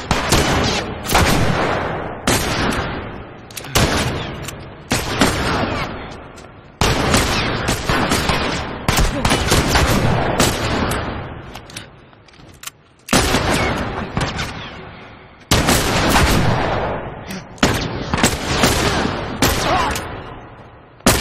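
Loud gunshots bang one after another, each trailing off in a long echo.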